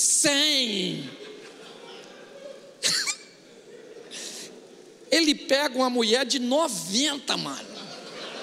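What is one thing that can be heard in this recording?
A middle-aged man speaks with animation through a microphone in a large hall.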